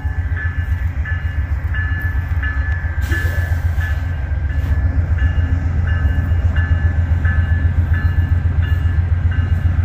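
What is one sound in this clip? A passenger train rumbles past close by.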